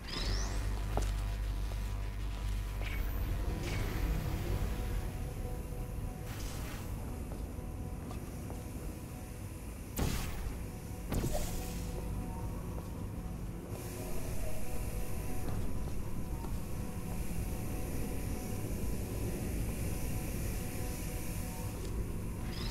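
A laser beam hums steadily.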